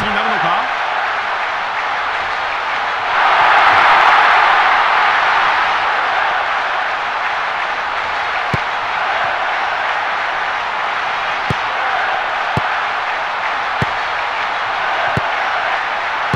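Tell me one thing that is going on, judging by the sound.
A stadium crowd roars steadily, swelling loudly for a moment.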